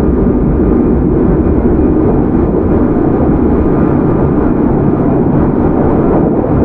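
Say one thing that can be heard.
A train rumbles steadily along the tracks close by.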